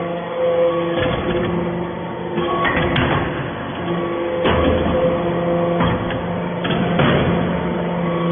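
A hydraulic press thumps loudly as it compacts material.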